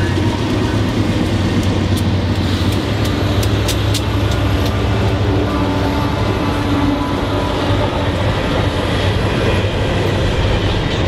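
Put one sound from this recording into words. Diesel locomotives rumble loudly close by as they haul a freight train past.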